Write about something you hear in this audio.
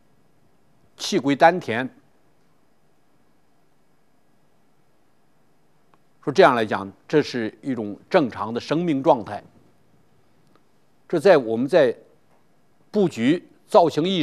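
An elderly man speaks calmly and expressively into a close microphone, with pauses.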